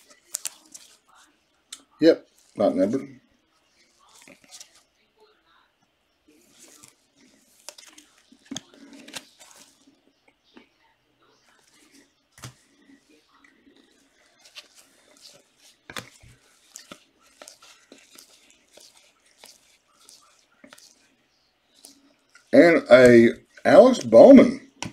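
Gloved hands flip and slide through a stack of trading cards.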